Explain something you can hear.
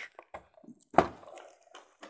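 A box knocks onto a table.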